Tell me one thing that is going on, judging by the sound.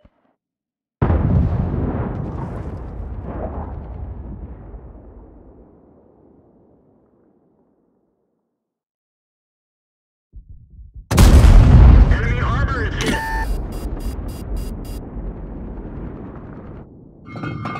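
A tank cannon fires with a heavy boom that rumbles away.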